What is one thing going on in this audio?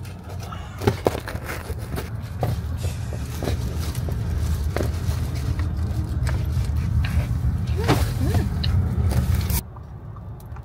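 A car's engine and tyres rumble steadily from inside the car.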